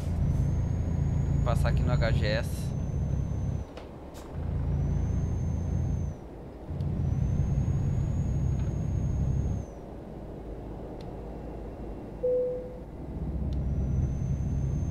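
A truck engine rumbles steadily, dropping away at moments.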